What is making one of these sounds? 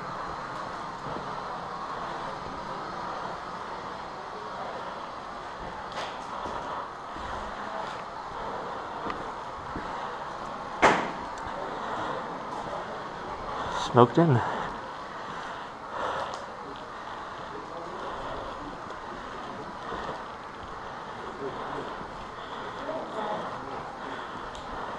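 Footsteps scuff across a gritty concrete floor in an empty echoing room.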